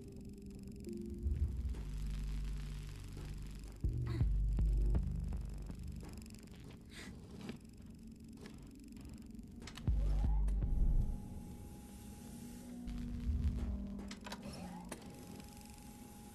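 A heavy crate scrapes and grinds across a metal floor.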